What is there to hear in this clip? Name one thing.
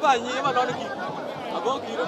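A young man speaks close by, laughing.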